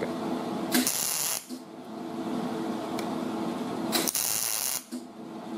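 A welding arc crackles and sizzles in short bursts.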